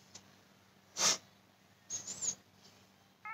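A young woman sighs and whimpers softly close to a microphone.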